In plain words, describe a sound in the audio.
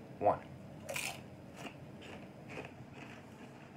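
A young man crunches on a chip.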